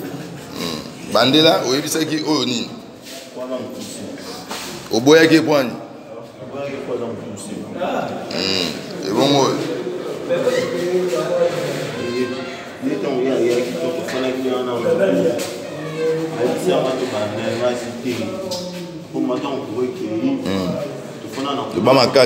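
Several young men shout and talk over one another close by.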